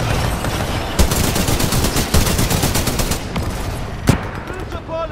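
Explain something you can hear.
A rifle fires sharp shots that echo.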